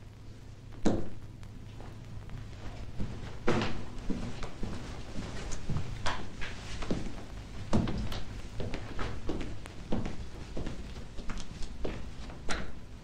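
Footsteps sound on a hard floor indoors.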